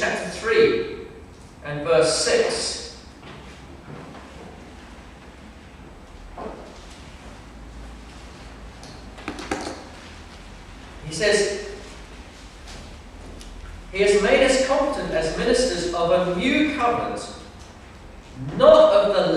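A middle-aged man speaks calmly into a microphone, with pauses, in an echoing room.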